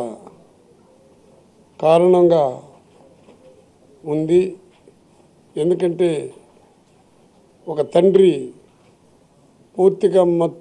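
A middle-aged man speaks into a microphone in short, measured bursts with pauses between.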